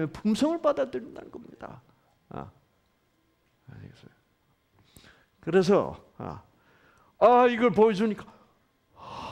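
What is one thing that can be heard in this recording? An older man speaks with animation through a microphone, in pauses.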